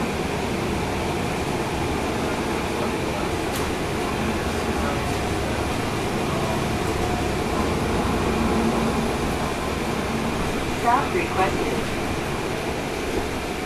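A vehicle's engine rumbles steadily from inside as it drives along a street.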